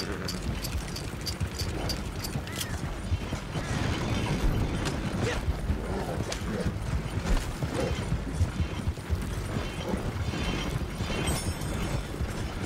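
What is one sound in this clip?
Horse hooves clop steadily on the ground.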